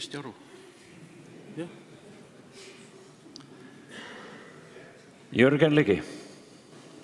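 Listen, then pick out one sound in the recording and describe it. A middle-aged man speaks briefly into a microphone.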